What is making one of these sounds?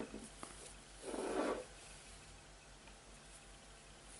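Yarn rustles softly as hands handle it.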